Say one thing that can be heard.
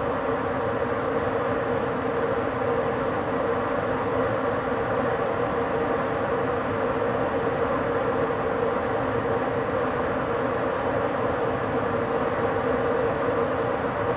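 A train rolls steadily along the rails with a constant rumble.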